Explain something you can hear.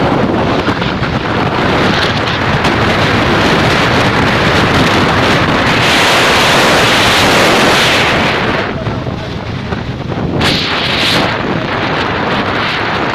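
Wind rushes loudly past a moving vehicle on a road.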